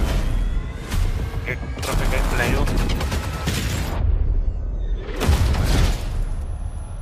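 Explosions boom and debris scatters.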